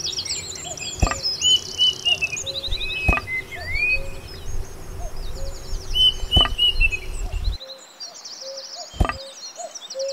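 Plastic pieces click into place on a small model.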